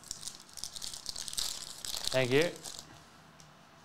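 A foil wrapper crinkles and tears between fingers.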